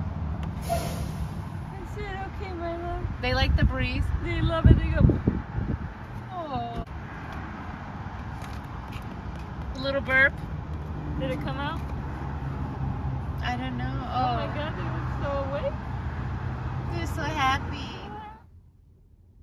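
A young woman talks cheerfully close by.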